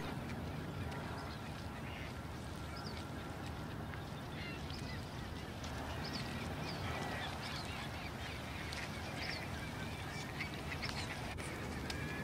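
Pelicans splash and flap their wings in shallow water.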